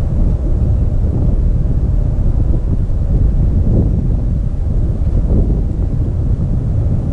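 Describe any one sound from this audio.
Strong wind buffets the microphone with a deep, steady roar.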